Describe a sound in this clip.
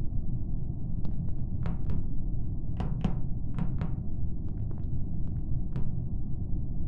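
Soft footsteps patter quickly.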